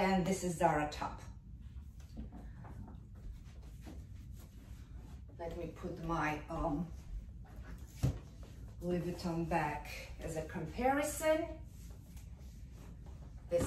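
A leather bag rustles as a woman handles it.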